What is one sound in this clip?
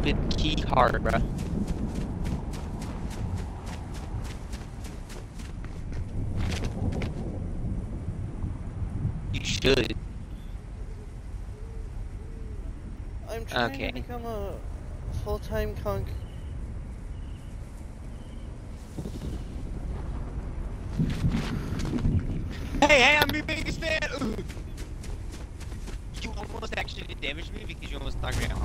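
Footsteps crunch over grass and gravel.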